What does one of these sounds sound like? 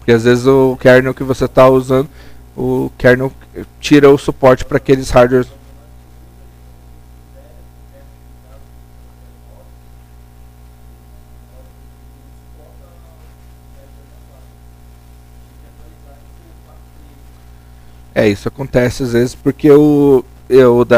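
A man speaks calmly through a microphone in an echoing room.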